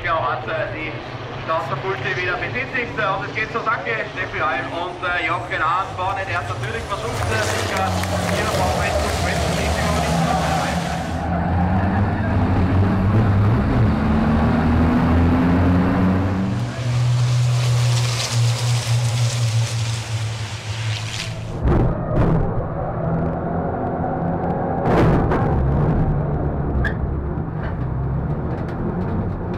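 Racing truck engines roar loudly.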